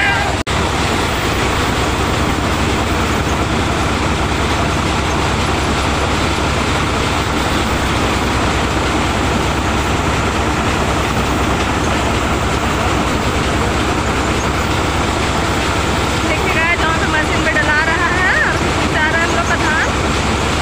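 A threshing machine drones loudly and steadily.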